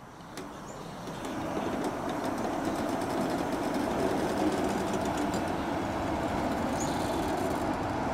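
A train rumbles and clatters past close by, growing louder as it gathers speed.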